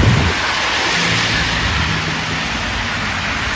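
A car engine hums as it passes.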